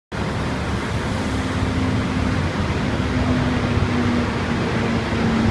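A truck engine idles with a low steady hum.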